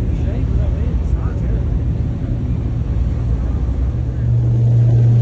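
A car engine rumbles by outside.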